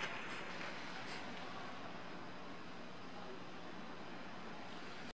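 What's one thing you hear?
Ice skate blades glide and scrape softly across the ice in a large echoing hall.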